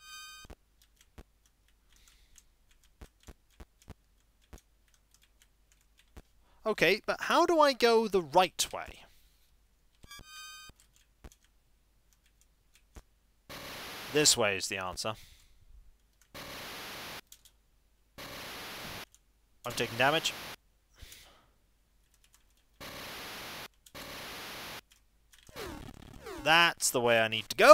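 Short electronic game beeps and blips sound.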